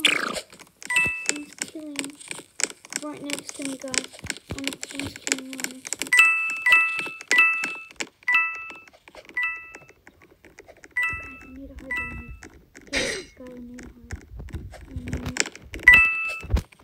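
Short bright game chimes ring out again and again as coins are picked up.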